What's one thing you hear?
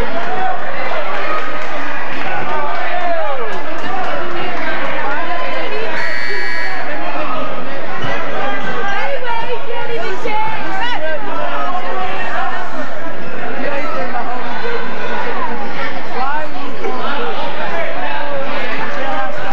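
A crowd of spectators chatters and calls out throughout in an echoing gym.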